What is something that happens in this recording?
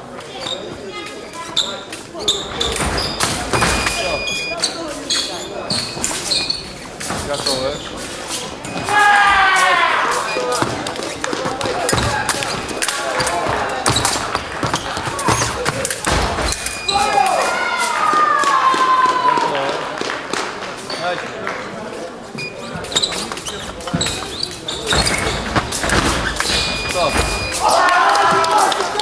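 Fencing blades clash and click sharply.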